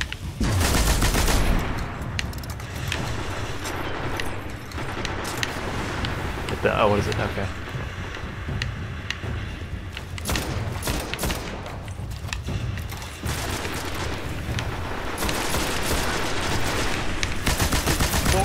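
A rifle fires in sharp shots.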